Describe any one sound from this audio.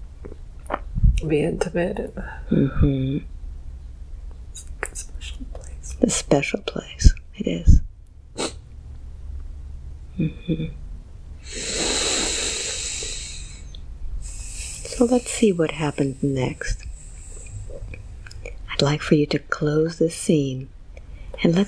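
A young man sobs and cries loudly, close by.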